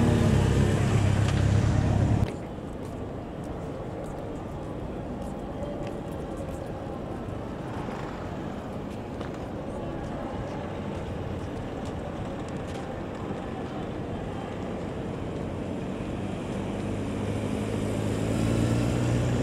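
A motorcycle engine rumbles nearby.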